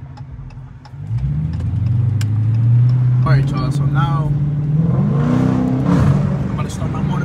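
A car engine roars louder as the car pulls away and accelerates.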